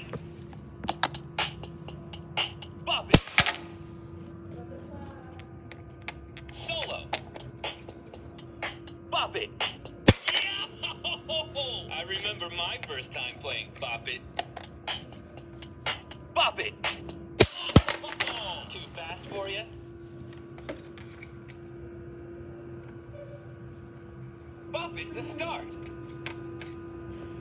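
Plastic parts of a toy click and clack as hands press, pull and twist them.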